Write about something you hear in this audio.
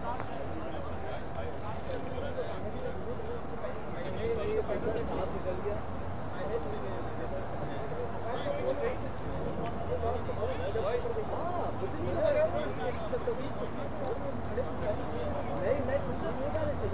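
Several men talk casually nearby outdoors.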